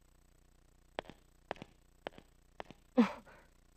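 Hard-soled footsteps click on stone.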